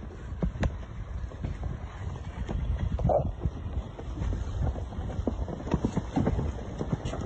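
Wind buffets outdoors, rumbling and gusting.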